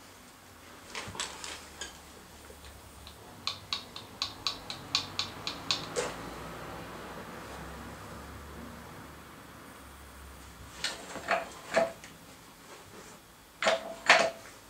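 Metal parts clank and knock sharply.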